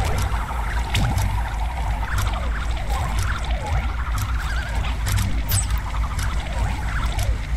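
Playful electronic game music plays steadily.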